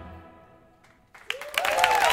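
A large choir holds a final sung chord that fades away.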